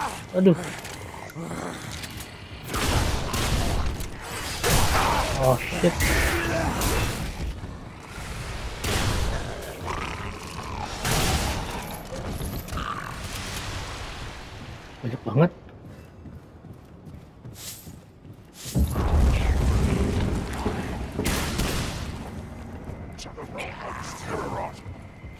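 A creature shrieks and hisses.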